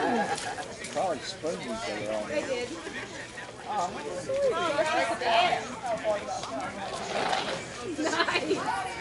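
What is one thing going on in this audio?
Men talk and call out to each other outdoors.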